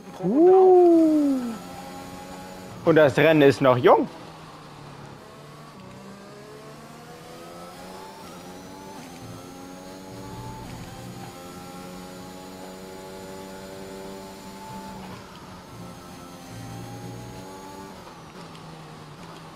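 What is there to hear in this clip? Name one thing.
A racing car engine whines at high revs, rising and dropping with each gear change.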